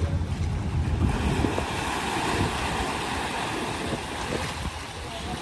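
Water churns and splashes behind a propeller.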